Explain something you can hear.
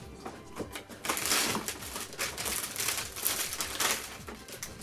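A person rustles and clatters through objects close by.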